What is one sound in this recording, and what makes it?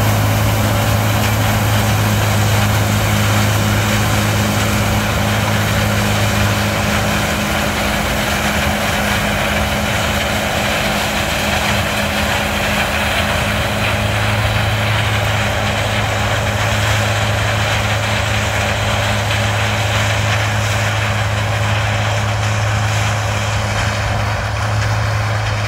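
A diesel combine harvester drones as it harvests through dry corn stalks.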